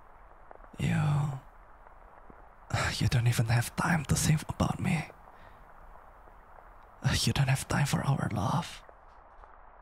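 A young man speaks playfully and close up.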